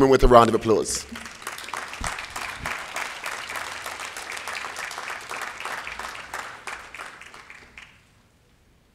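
An audience applauds steadily, then the clapping fades away.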